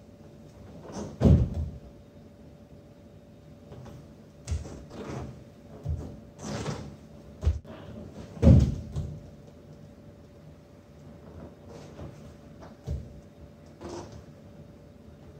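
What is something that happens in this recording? Bodies thump and shift on a padded mat.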